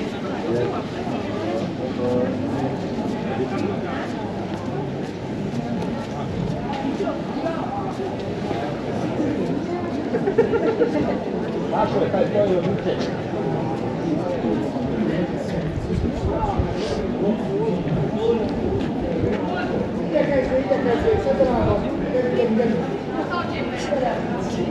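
A crowd of people chatters nearby in an open street.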